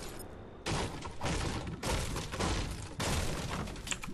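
A treasure chest bursts open with a bright chime.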